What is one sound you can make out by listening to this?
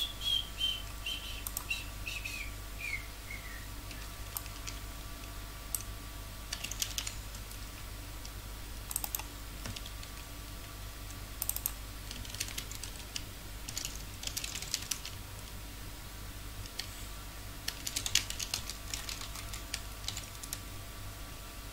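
Short bursts of crackling and clinking from a game's combat effects come and go.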